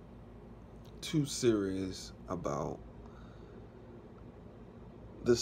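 A man speaks calmly, close up, in short phrases.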